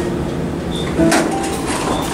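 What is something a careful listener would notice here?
Elevator doors rumble and slide open.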